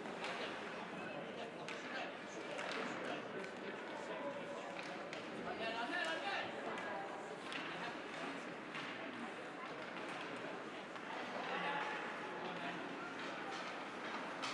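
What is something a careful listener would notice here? Spectators murmur and chatter nearby in a large echoing rink.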